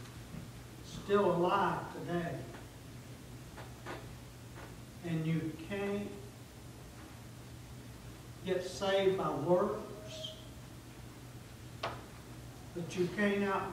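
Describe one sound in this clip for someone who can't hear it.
A middle-aged man preaches with emphasis through a microphone, in bursts with pauses, in a room with some echo.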